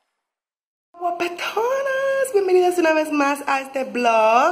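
A young woman speaks cheerfully and with animation, close by.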